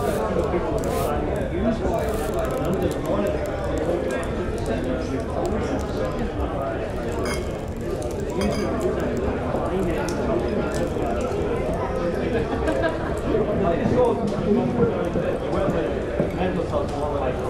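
A crowd of men and women chatter and murmur all around in a busy room.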